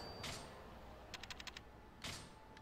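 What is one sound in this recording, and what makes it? A game menu cursor ticks with quick soft clicks.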